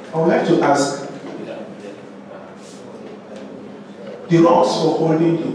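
A man speaks clearly in a room with some echo.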